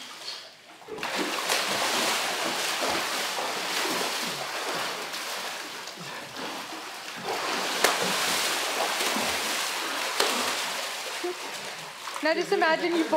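Water splashes loudly as a young man swims hard.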